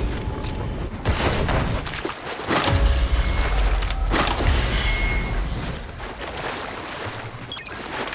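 Footsteps patter quickly over grass and dirt.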